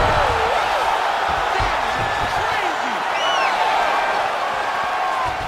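Fans in a crowd whistle loudly.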